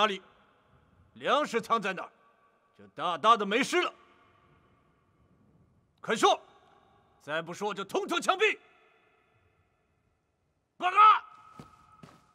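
A young man shouts harshly.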